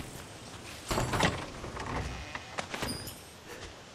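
A wooden chest lid thumps open.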